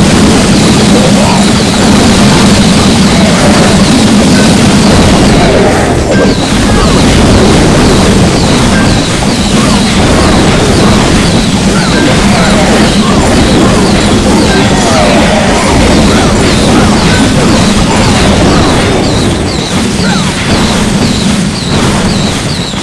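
Cartoonish battle sounds of clashing and small explosions play steadily.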